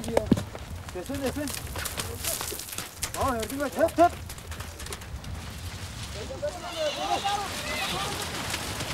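Horses whinny and neigh.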